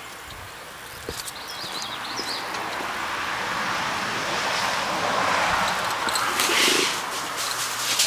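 A car drives past close by, its engine and tyre noise swelling and then fading.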